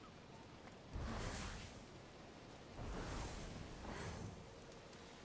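Air rushes past in a loud whoosh.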